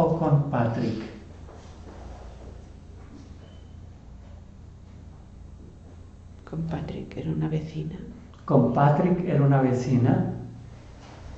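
A man speaks calmly and quietly nearby, in short bursts.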